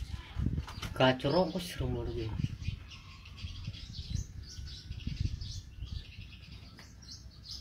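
A bird sings a warbling song close by.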